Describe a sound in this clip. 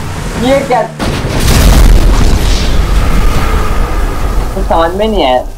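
A truck crashes into water with a loud splash.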